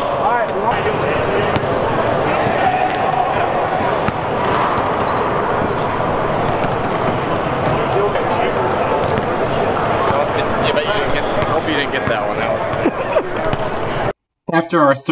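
Young men chatter and shout in a large echoing gym.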